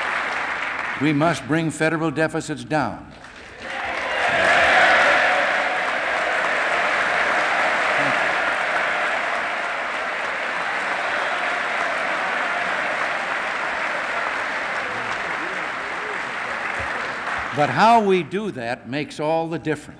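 An elderly man speaks calmly into a microphone in a large hall.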